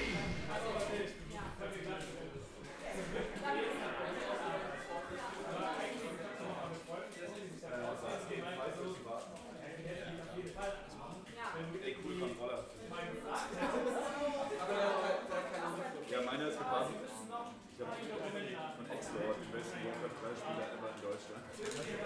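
Several young men chat nearby in a room.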